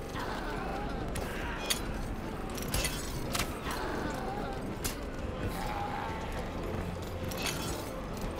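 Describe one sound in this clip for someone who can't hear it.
Arrows whoosh through the air.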